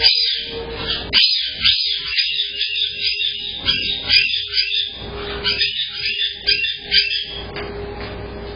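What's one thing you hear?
Small birds chirp and squawk rapidly indoors.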